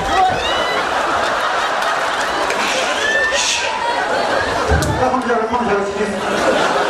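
A large crowd cheers and chatters loudly in a big echoing space.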